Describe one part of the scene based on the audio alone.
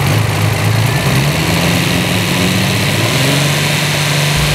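An engine revs up briefly, then settles back.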